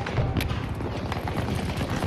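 An explosion booms in the distance.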